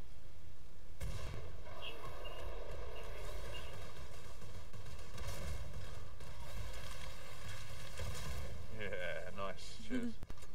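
A heavy gun fires in rapid, continuous bursts.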